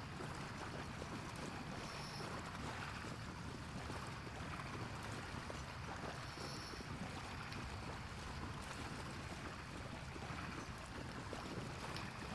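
Footsteps splash slowly through shallow water.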